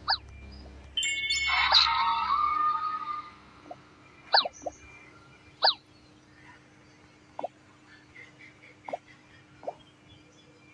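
Short, bright game menu blips sound as players are selected.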